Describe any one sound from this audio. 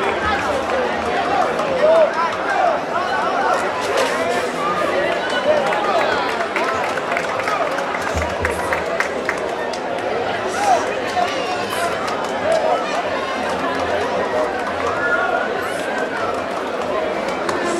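A large outdoor crowd chatters and shouts throughout.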